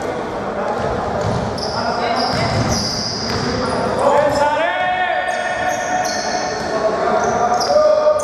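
Young men shout to each other across a large echoing hall.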